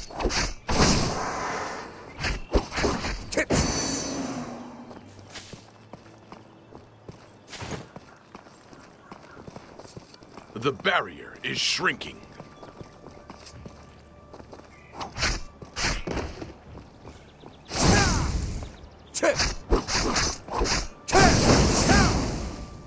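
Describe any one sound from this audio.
Blades clash and slash loudly in combat.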